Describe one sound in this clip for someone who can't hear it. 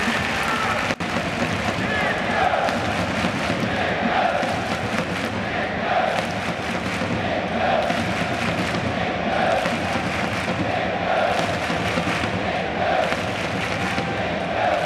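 A large crowd chants loudly in rhythm in a big open stadium.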